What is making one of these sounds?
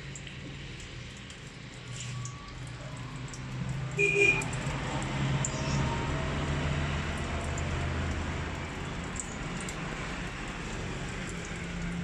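Liquid drips into a metal pan.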